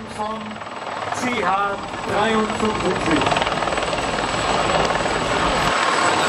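A large helicopter's rotor blades thump loudly overhead, growing louder as it approaches.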